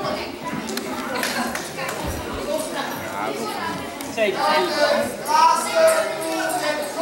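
Young girls chatter and laugh in an echoing hall.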